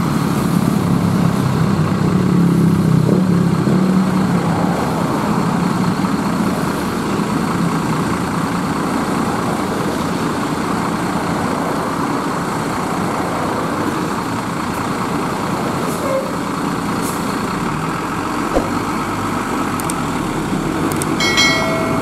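A diesel coach bus engine idles with a deep rumble.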